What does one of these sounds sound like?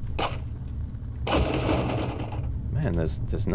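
A knife strikes a wooden crate.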